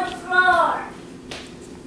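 A young girl calls out nearby in a high voice.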